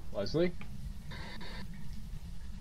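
A handheld radio crackles with static.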